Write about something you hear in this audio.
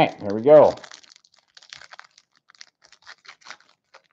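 Plastic wrappers crinkle between fingers.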